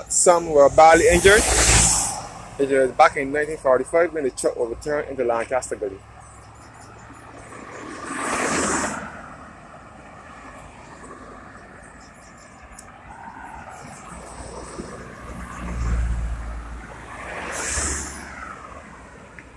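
Cars drive past one after another on a road, each swelling and fading.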